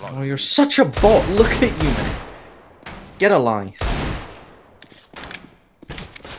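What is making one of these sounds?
A pistol fires single shots.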